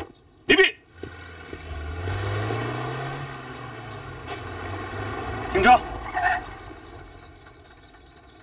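A jeep engine rumbles as it drives past.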